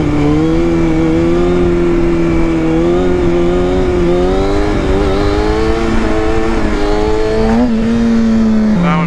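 A motorcycle engine roars steadily close by, its pitch shifting as the rider works the throttle.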